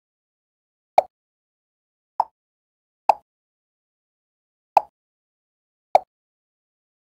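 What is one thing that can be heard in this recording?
Short soft pops sound as blocks are tapped away, one at a time.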